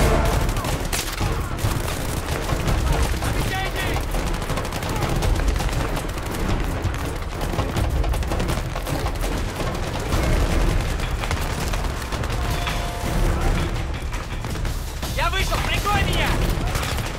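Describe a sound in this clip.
Gunfire and explosions rumble steadily in the distance of a battle.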